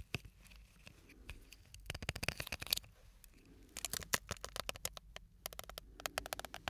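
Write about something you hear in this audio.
Fingers tap and crinkle a small plastic object close to a microphone.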